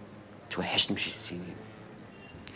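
A man speaks warmly up close.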